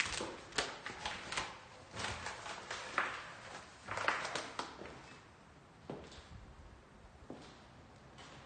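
Footsteps crunch over loose debris.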